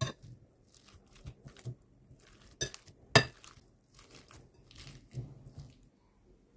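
A metal fork clinks and scrapes against a glass bowl.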